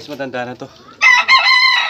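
A rooster crows loudly close by.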